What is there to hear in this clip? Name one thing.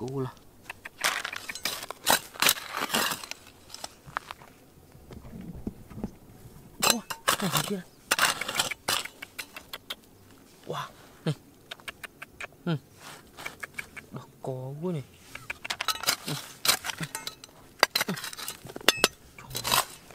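A metal trowel scrapes and digs into dry, stony soil.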